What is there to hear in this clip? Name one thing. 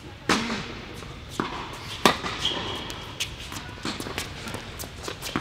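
Tennis balls are struck with rackets, each hit a sharp pop echoing in a large indoor hall.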